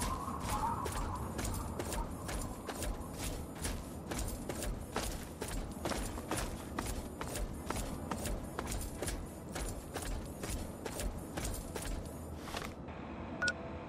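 Footsteps crunch steadily over dry gravel.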